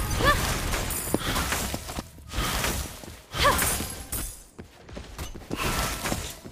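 Video game spell effects whoosh and clash in quick bursts.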